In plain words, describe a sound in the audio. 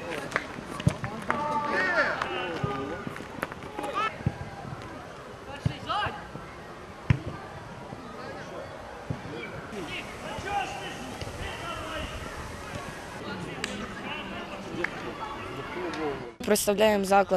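Players shout to each other outdoors.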